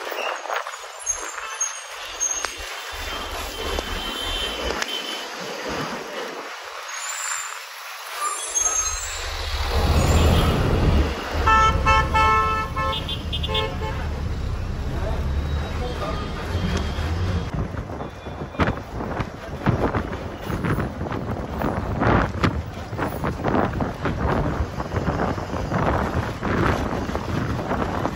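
Wind rushes past an open window.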